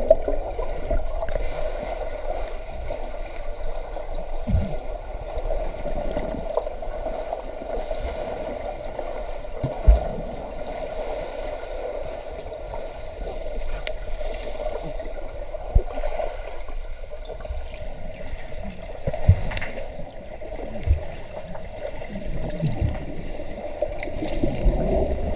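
Air bubbles rush and gurgle, heard underwater.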